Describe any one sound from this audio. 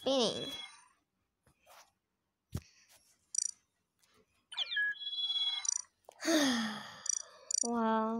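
Game menu clicks and chimes sound as options are chosen.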